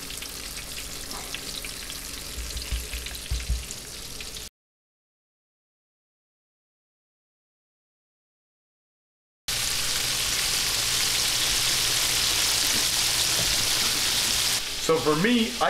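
Hot oil sizzles and crackles in a frying pan.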